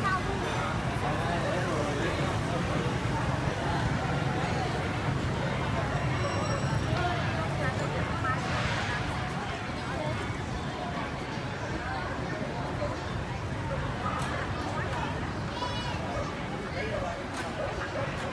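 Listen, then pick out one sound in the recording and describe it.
A crowd of men, women and children chatters outdoors nearby.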